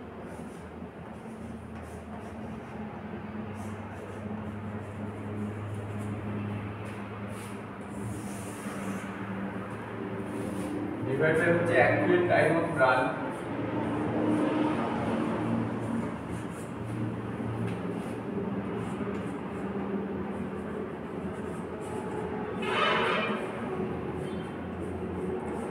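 A young man speaks calmly and steadily, close by in an echoing room.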